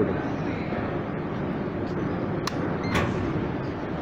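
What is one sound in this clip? A ticket gate beeps as a card is tapped.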